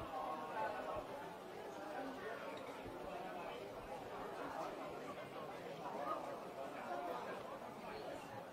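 A crowd of men and women chatter and murmur loudly all around in an echoing hall.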